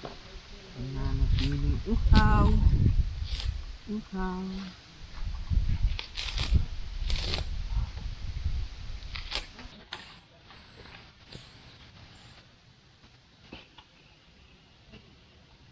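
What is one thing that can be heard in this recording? Coconut husk fibres tear and rip as they are pulled apart by hand.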